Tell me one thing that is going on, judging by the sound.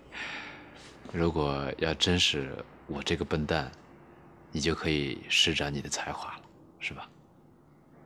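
A second man speaks with animation, close by.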